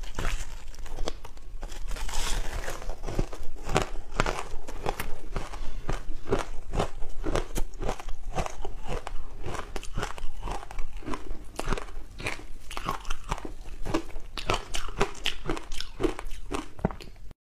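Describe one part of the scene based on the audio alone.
A young woman chews crunchy food wetly and close to a microphone.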